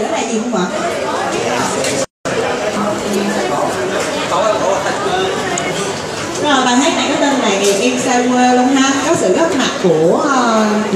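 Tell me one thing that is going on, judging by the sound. A crowd of people chatter in a large, echoing hall.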